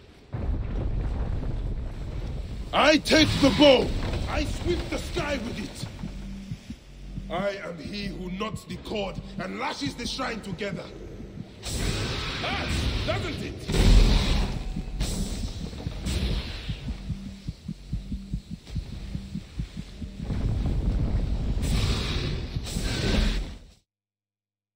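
Low rumbling booms.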